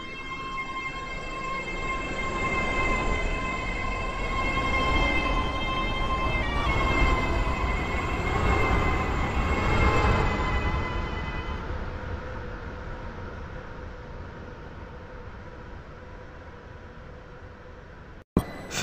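A train rumbles past on the tracks, growing louder and then fading.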